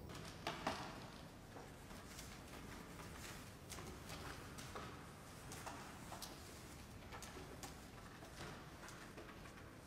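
Wheelchair wheels creak and roll slowly along a hard floor.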